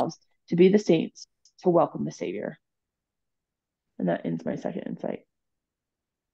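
A woman speaks calmly over an online call, in short bursts.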